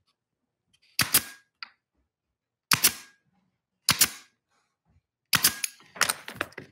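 A pneumatic nail gun fires sharply, one shot at a time.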